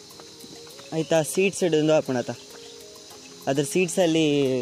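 A young man talks with animation close by, outdoors.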